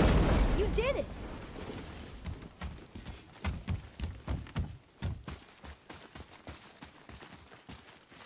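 Footsteps thud on stone and wooden planks.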